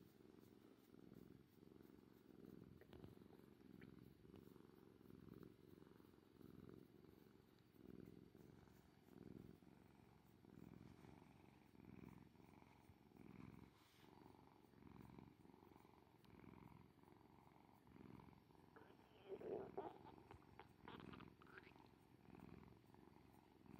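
A cat purrs loudly and steadily up close.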